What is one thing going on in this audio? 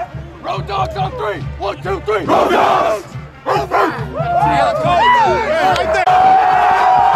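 Young men cheer and shout loudly together outdoors.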